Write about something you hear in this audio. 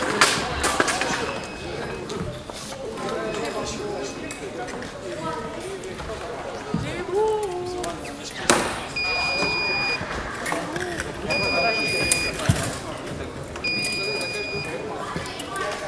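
An electronic scoring box beeps with short steady tones.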